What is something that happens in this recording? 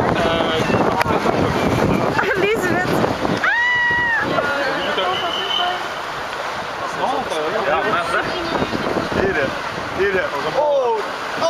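Water splashes as riders slide down into a pool.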